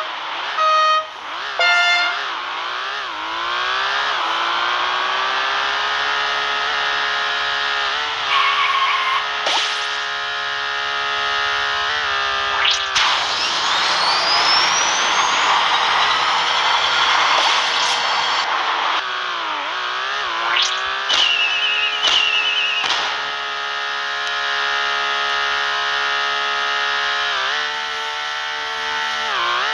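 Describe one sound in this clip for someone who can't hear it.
A toy-like kart engine hums steadily, rising and falling in pitch as it speeds up and slows.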